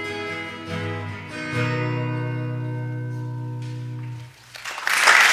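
A guitar plays a closing chord that rings out.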